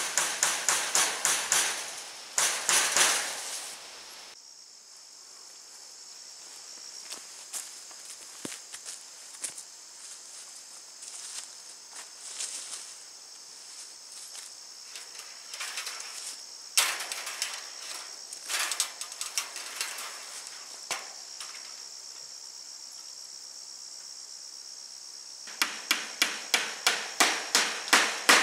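A hand tool clicks rapidly against wire fencing.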